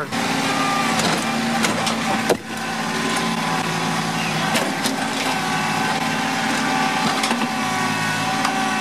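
Concrete slabs and rubble clatter and knock as a loader bucket hits them.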